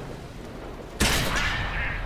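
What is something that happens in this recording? A shell explodes against a tank with a loud blast.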